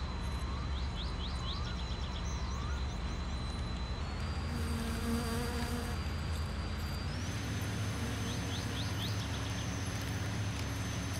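An electric model train whirs as it circles a track.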